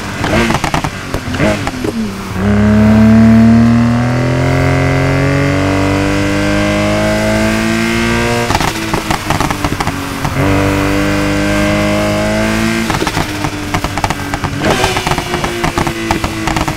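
A sports car engine roars and climbs in pitch as it speeds up through the gears.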